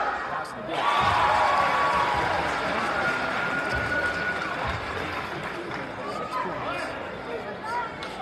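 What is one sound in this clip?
Basketball shoes squeak on a wooden court.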